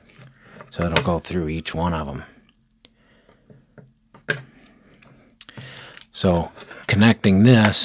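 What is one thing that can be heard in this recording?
Plastic plugs click and rattle as they are pushed into sockets.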